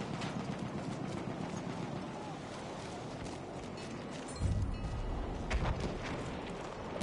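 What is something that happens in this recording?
Explosions rumble and boom in a battle.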